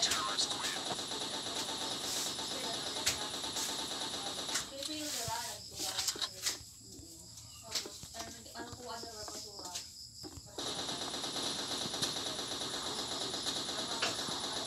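An automatic rifle fires rapidly in a video game.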